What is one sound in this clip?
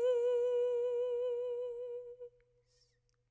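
A young woman sings a long held note with vibrato close to a microphone.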